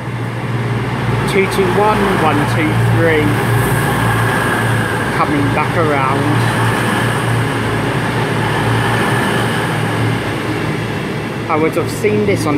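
A train rushes past close by with a loud, steady rumble.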